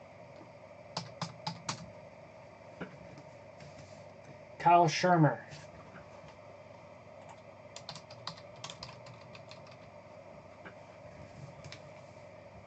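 Plastic card cases click and tap as hands handle them.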